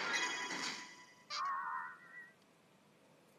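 Bright electronic game sound effects chime and whoosh.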